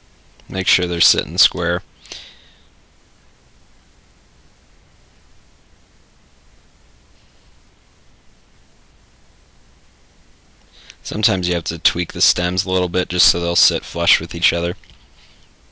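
A man speaks calmly and close by, explaining.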